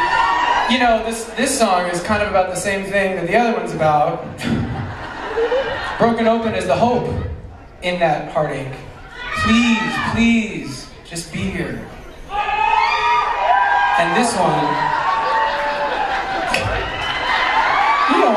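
A man speaks into a microphone over loudspeakers in a large echoing hall.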